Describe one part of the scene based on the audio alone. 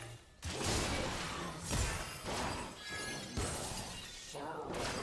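Magic spell blasts whoosh and crackle in quick bursts.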